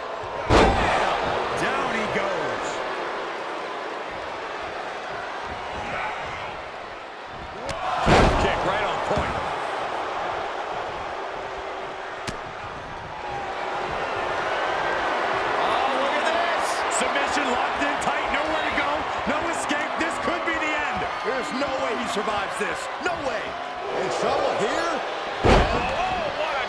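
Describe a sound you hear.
Bodies slam heavily onto a wrestling mat with loud thuds.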